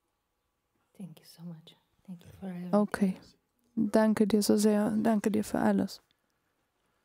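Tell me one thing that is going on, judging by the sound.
A middle-aged woman speaks softly into a microphone.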